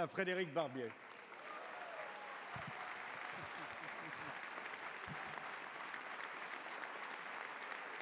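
A large crowd applauds steadily in a large echoing hall.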